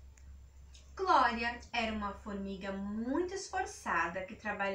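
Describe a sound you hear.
A young woman reads aloud in a lively, sing-song voice close by.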